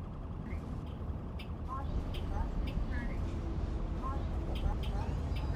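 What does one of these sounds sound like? A bus engine rumbles low and steady.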